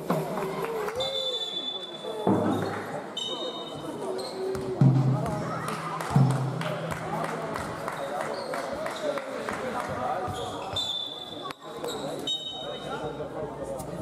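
Sneakers squeak sharply on the court floor.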